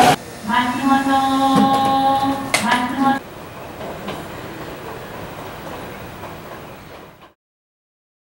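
An electric train hums quietly while stopped at a platform.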